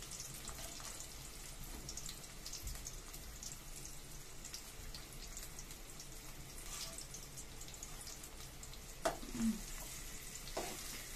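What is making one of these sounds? Onions sizzle and crackle softly in hot oil.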